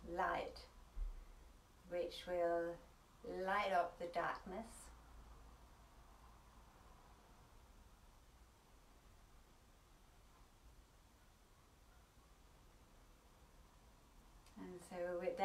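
A woman speaks softly and calmly, close by, with long pauses.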